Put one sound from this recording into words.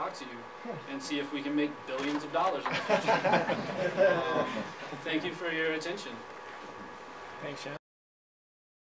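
A young man speaks casually and laughs, close by.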